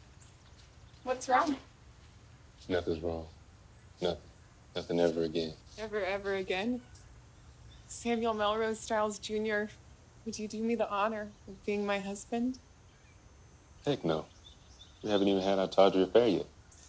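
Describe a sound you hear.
A young man speaks softly, close by.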